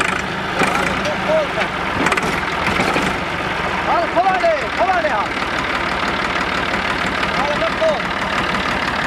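Men call out nearby over the engine.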